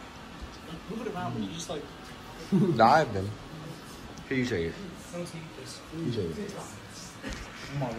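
Young people talk and laugh nearby.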